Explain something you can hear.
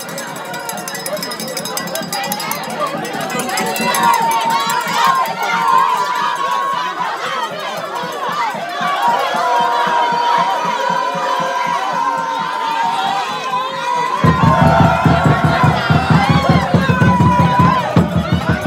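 A large crowd of men chants and sings loudly outdoors.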